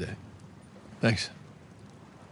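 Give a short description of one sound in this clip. A young man answers briefly and calmly.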